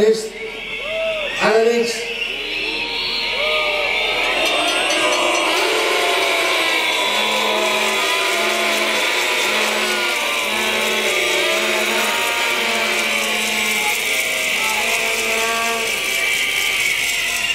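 A man speaks loudly through a megaphone outdoors.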